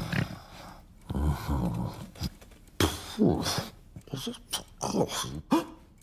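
A man mumbles and groans drowsily.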